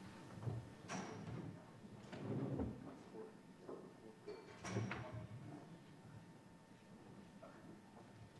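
A crowd murmurs quietly in a large room.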